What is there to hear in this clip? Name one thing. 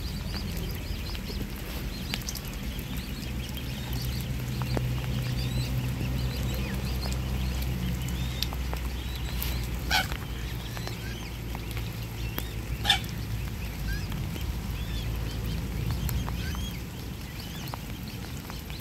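Water laps and splashes as swans paddle close by.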